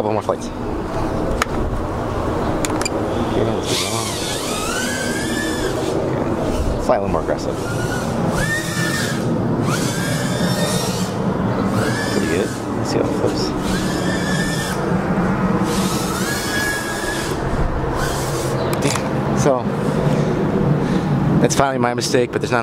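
A small drone's motors whine, rising and falling in pitch.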